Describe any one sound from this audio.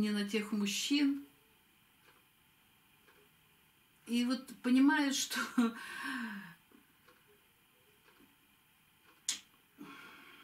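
A middle-aged woman speaks with animation, close by, in short bursts with pauses.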